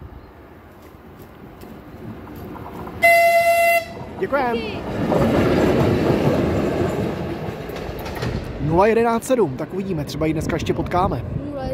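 An electric locomotive approaches and rumbles past on the rails, then fades away.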